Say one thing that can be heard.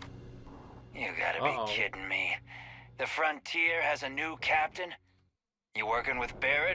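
A man speaks gruffly and mockingly through a helmet.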